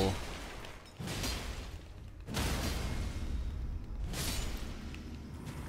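A sword slashes through flesh with wet, heavy impacts.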